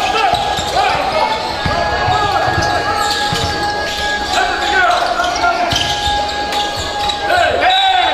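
Sneakers squeak sharply on a hardwood floor in a large echoing hall.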